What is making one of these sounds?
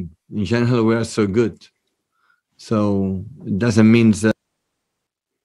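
A middle-aged man speaks calmly into a microphone at close range.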